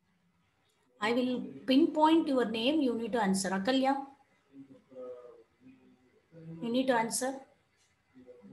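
A woman speaks calmly into a microphone over an online call.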